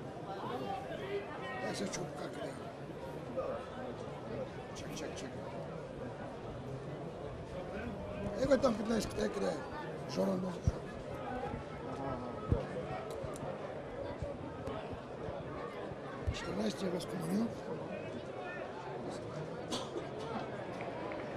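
A large crowd in an outdoor stadium murmurs and calls out.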